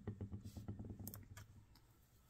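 Hands pat and press soft clay on a table.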